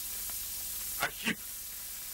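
A man exclaims sharply, close by.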